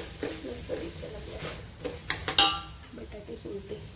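A metal spoon scrapes and clanks against a pot.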